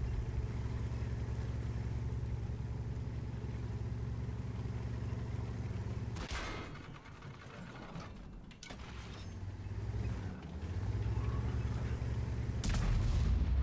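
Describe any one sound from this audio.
A heavy tank engine rumbles and clanks steadily.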